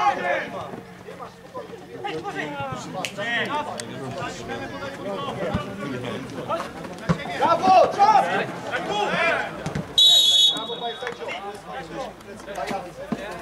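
Players shout and call out to each other across an open field.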